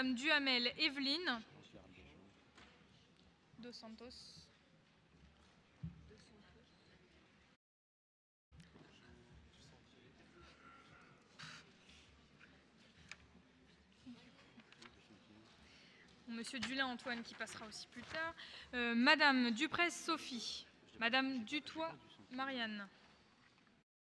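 A man reads out through a microphone in a large echoing hall.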